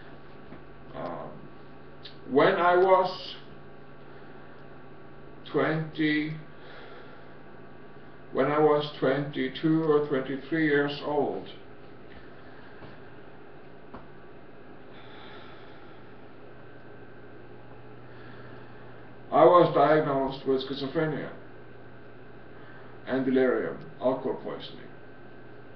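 A middle-aged man speaks calmly in short bursts, close to the microphone.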